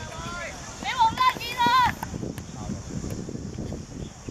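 A football thuds as a boy kicks it.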